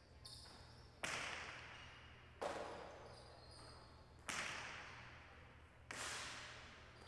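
A hard ball smacks against a wall and echoes through a large hall.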